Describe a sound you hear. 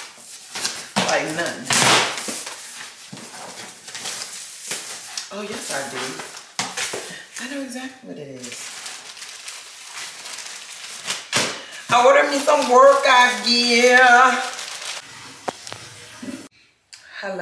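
Cardboard rustles and scrapes as a box is opened and unpacked.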